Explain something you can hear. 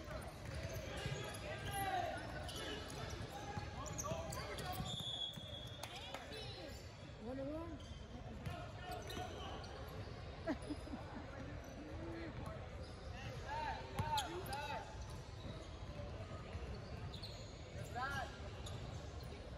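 Young players shout and call out across the court.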